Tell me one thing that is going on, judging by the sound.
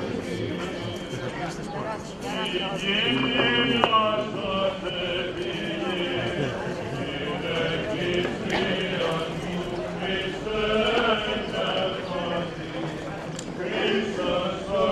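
Men chant together in a procession.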